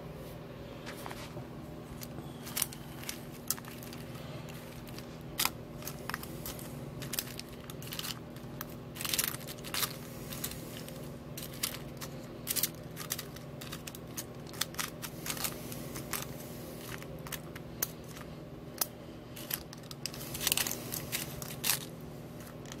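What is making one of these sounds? A fork clicks and scrapes against pasta in a pot.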